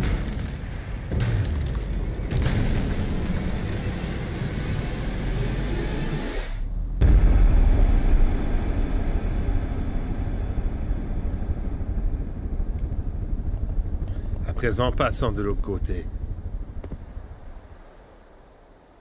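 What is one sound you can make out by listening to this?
A deep rumbling roar surges loudly, then slowly fades away.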